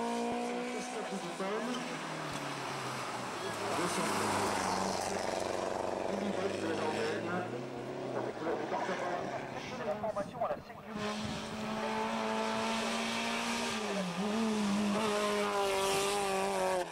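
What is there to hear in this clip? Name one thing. Rally car engines roar loudly, revving up and down as cars race past.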